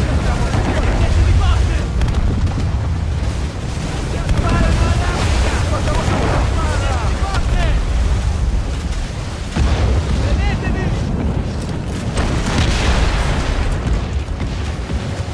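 Stormy wind and waves roar steadily.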